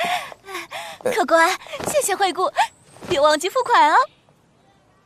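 A young woman speaks calmly and sweetly up close.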